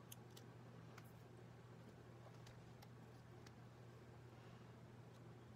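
Paper pieces rustle and click softly as they are handled on a table.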